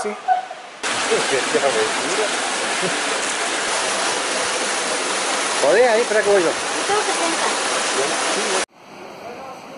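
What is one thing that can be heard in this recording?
Water rushes and splashes loudly over rocks close by.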